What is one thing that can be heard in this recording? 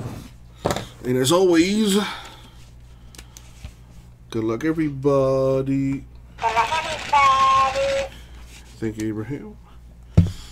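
A toy hamster repeats words in a squeaky, high-pitched voice.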